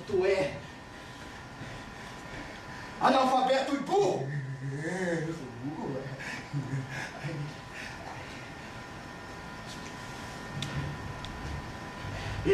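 A young man speaks loudly and with emotion.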